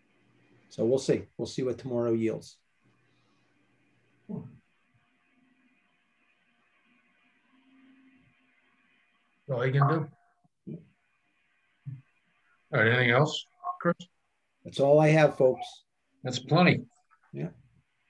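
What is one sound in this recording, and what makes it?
A man speaks calmly through an online call, in short bursts with pauses.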